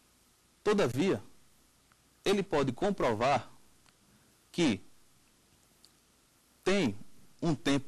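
A man speaks clearly into a microphone, in short phrases with pauses, like a presenter.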